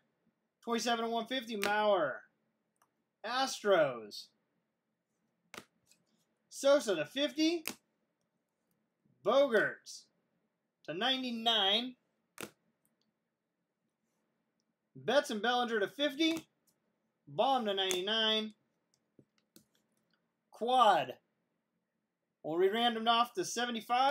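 Hard plastic card cases click and rattle as they are handled.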